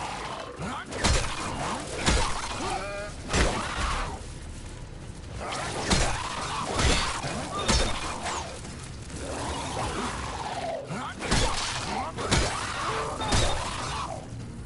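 Heavy blows thud and crack in a fight.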